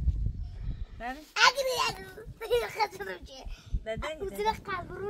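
A young girl speaks in a high, lively voice, close by.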